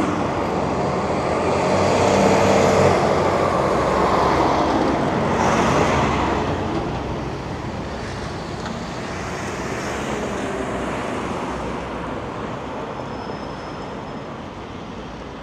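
A car passes slowly close by and drives away.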